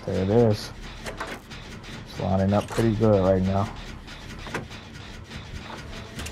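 A generator engine clatters and rattles.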